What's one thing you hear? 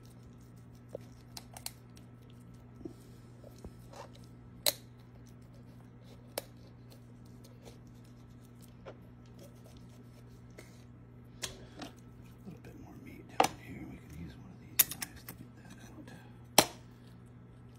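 Meat and a knife knock against a cutting board.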